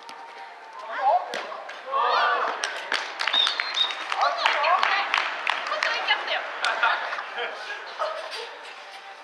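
Young men shout and cheer outdoors after a goal.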